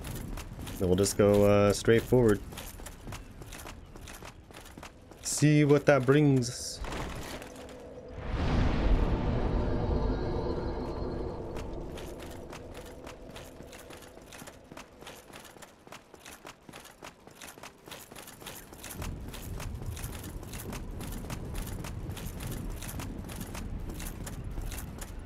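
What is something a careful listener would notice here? Heavy footsteps clank on stone.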